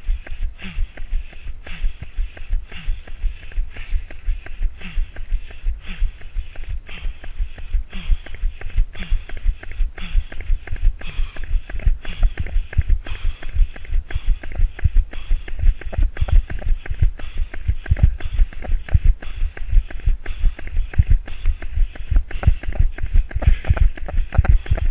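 Footsteps crunch quickly through dry leaves.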